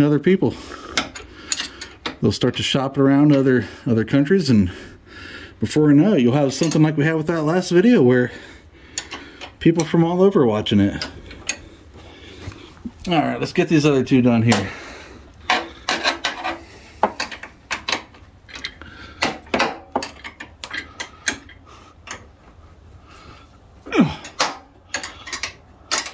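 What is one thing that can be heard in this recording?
A wrench clinks on a steel bolt.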